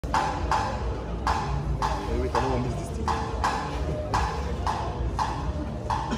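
Hand drums beat a steady rhythm.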